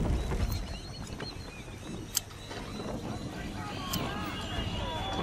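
Seagulls cry overhead.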